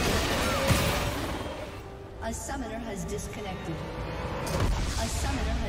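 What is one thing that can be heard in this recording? Fantasy game battle effects clash and crackle.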